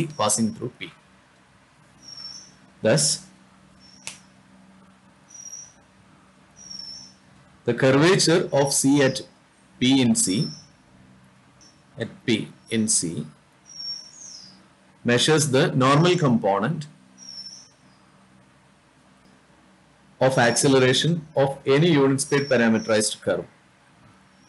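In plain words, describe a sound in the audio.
A man lectures calmly into a close microphone, in bursts with pauses.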